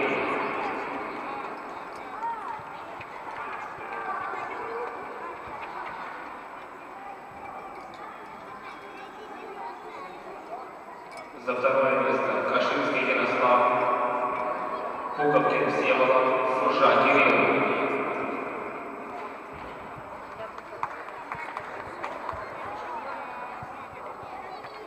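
Voices murmur in a large echoing hall.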